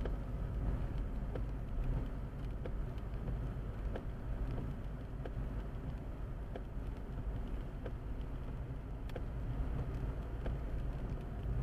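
A car engine hums low and steady from inside the car.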